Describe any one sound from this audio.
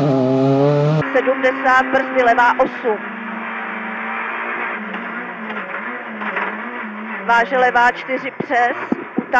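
A rally car engine drones steadily from inside the car.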